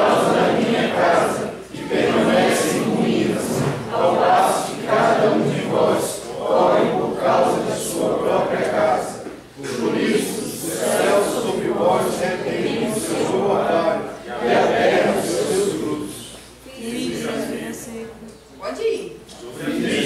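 A young woman reads out calmly through a microphone and loudspeaker.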